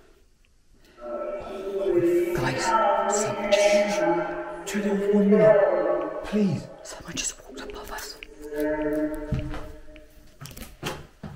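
A woman speaks close by in a tense, hushed but animated voice.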